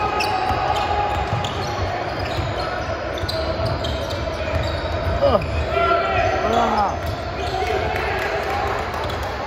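A basketball bounces with dull thumps on the court.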